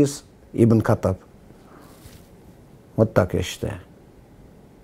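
An older man speaks calmly and close by, in short phrases.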